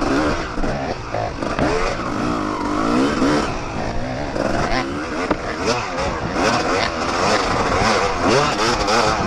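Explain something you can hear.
Another dirt bike engine buzzes a little way ahead.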